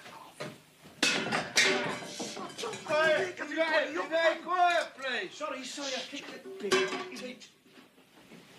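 A man sings with a strong voice.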